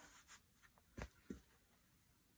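A flat board taps down onto a table.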